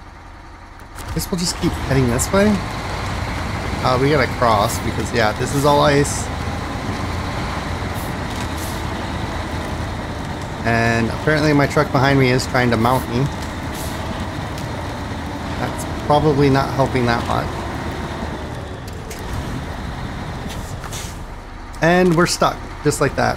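A heavy truck engine rumbles and strains steadily.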